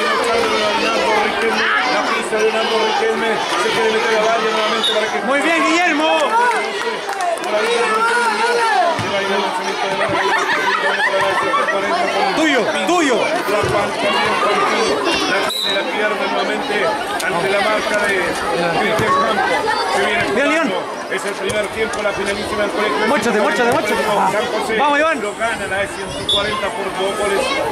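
A crowd of children shouts and cheers nearby outdoors.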